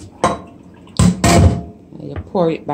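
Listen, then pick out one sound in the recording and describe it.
Chunks of food tumble and thud into a plastic bowl.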